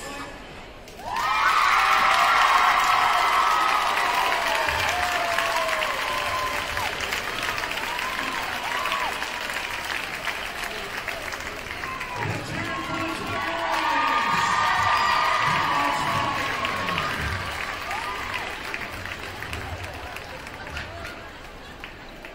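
A crowd cheers and screams loudly in a large echoing gym.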